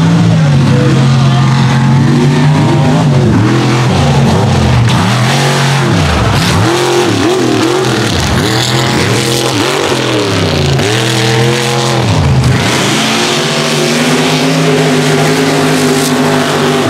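A truck engine roars and revs loudly, rising and falling in pitch.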